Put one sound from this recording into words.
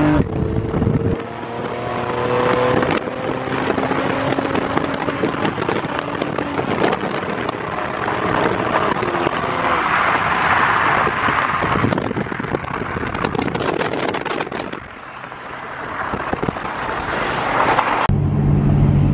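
Tyres roar on the road as cars drive side by side.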